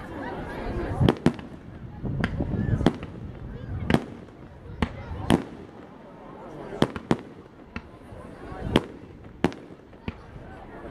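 Fireworks burst with sharp booms and crackles, echoing outdoors.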